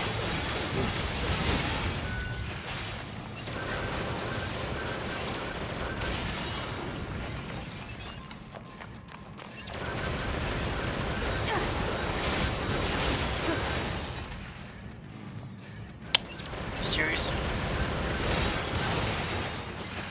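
Fiery explosions burst and roar.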